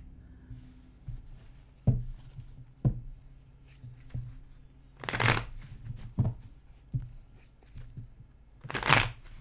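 Cards shuffle and tap together softly.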